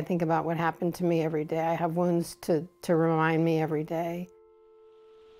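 A woman speaks calmly and with emotion, heard through a recording.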